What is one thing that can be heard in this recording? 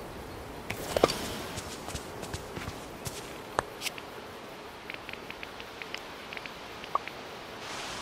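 Soft interface clicks tick now and then.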